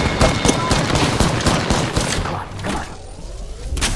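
A shield cell charges with an electric hum.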